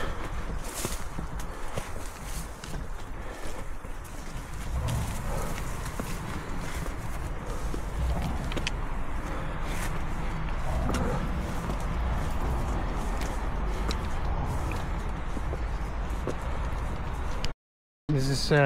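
Footsteps crunch through grass and dirt on a trail.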